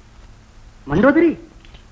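A woman calls out with animation.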